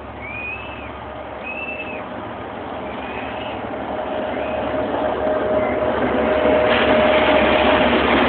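A diesel train rumbles closer, growing steadily louder.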